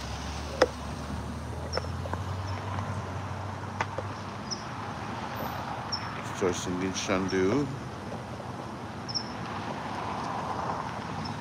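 Cars drive slowly past on a paved road.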